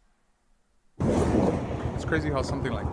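A motorcycle engine rumbles loudly.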